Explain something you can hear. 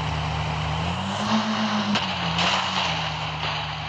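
Tyres thump and rattle over rough ground.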